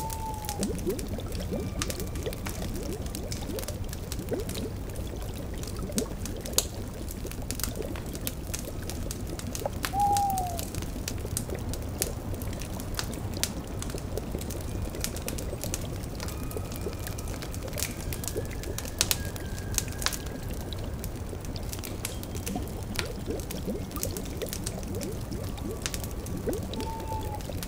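A cauldron bubbles and gurgles.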